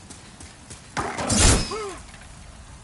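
Armoured figures clash with a sudden heavy blow.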